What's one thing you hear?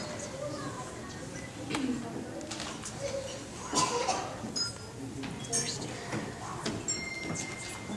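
Young children chatter and call out in a large room.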